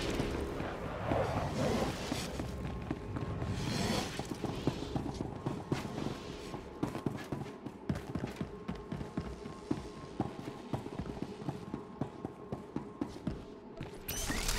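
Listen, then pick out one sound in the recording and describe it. Game combat sounds crackle and thump in quick bursts.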